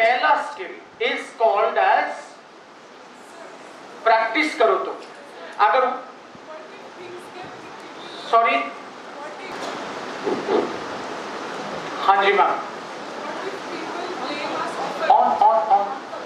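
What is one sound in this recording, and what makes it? A man speaks with animation into a microphone, heard over a loudspeaker in an echoing hall.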